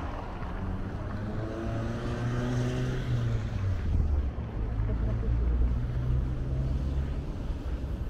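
A car engine passes close by.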